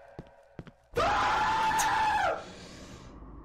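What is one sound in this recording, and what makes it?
A young man laughs loudly into a microphone.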